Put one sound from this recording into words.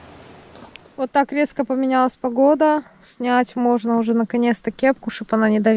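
A young woman speaks calmly, close to a microphone.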